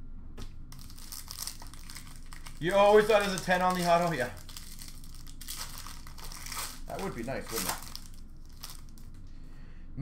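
Plastic wrapping rustles and crinkles as it is handled.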